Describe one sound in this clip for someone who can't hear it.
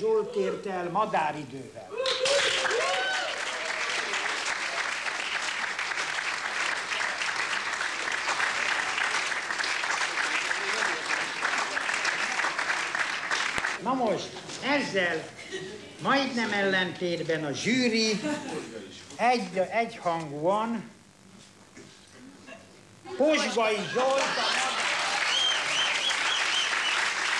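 An elderly man speaks animatedly into a microphone in a large hall.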